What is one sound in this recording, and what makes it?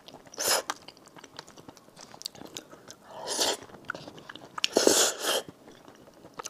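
A person slurps noodles loudly, close up.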